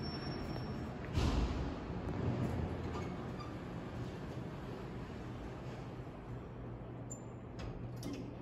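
Elevator doors slide shut with a low rumble.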